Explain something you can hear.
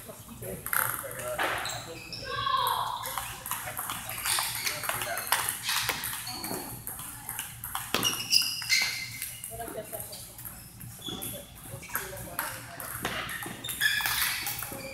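Ping pong balls click sharply against paddles and tables in a quick, uneven rhythm, echoing in a large hall.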